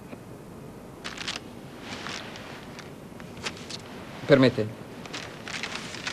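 Paper rustles as a man unrolls a large sheet.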